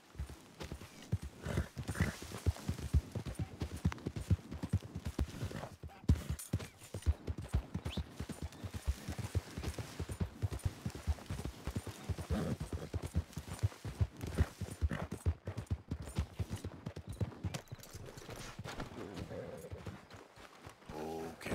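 A horse gallops with rhythmic hoofbeats on soft ground.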